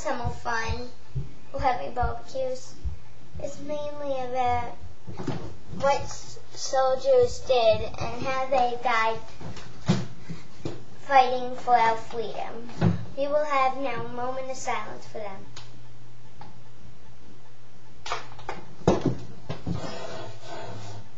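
A young girl talks with animation close to a microphone.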